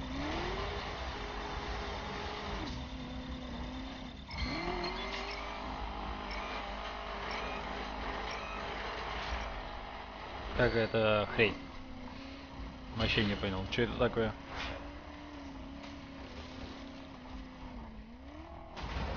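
A car engine revs and hums steadily.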